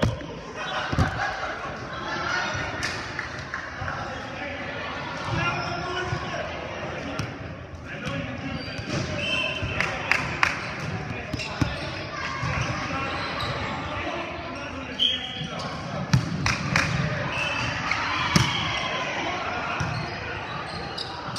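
Men talk and call out across a large echoing gym.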